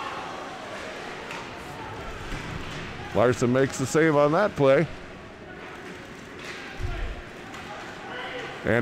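Skates scrape and hiss across the ice.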